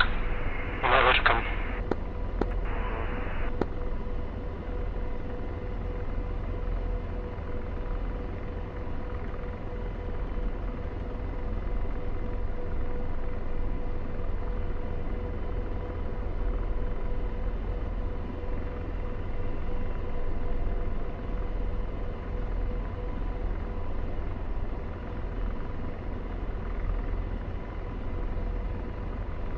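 A jet engine drones steadily inside a cockpit.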